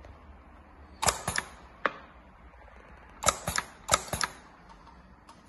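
A sewing machine's mechanism clacks sharply a few times.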